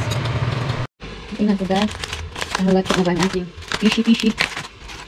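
Aluminium foil crinkles and rustles.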